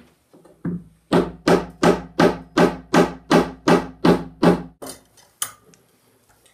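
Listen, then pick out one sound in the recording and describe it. A hammer taps rapidly on metal and wood.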